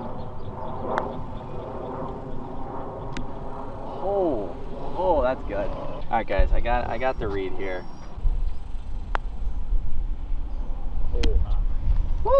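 A putter taps a golf ball with a light click.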